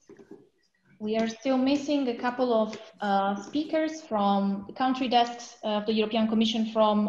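A woman speaks calmly over an online call.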